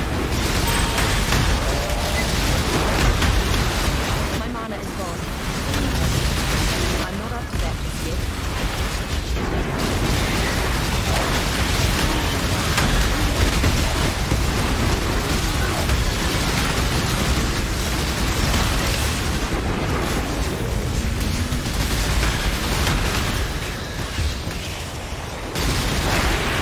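Magic spells crackle and explode in rapid bursts.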